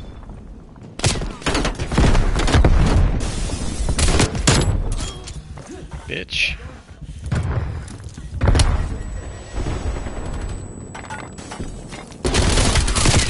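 Pistol shots crack out in quick bursts.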